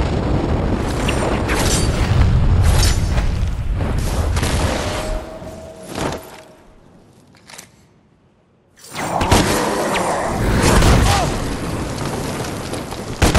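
Explosions and impacts burst during a fight.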